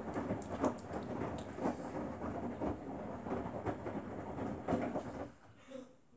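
Wet laundry tumbles and sloshes in a front-loading washing machine drum.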